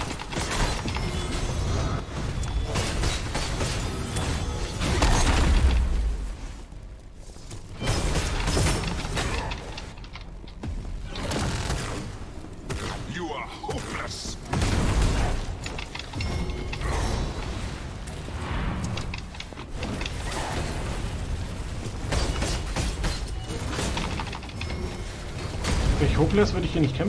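A man talks close to a microphone with animation.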